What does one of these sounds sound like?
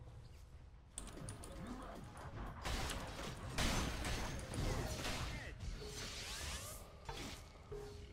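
Fantasy battle sound effects clash and burst.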